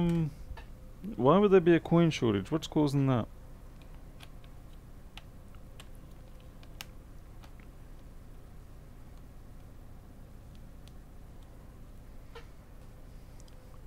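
Small clicks and taps of hands working on a laptop.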